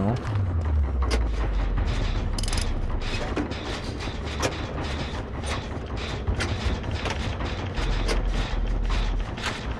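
A generator clanks and rattles as it is being repaired.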